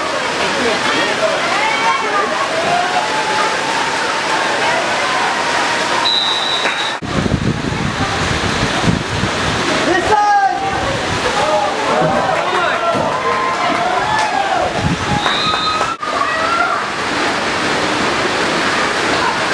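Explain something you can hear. Men shout and call out loudly outdoors.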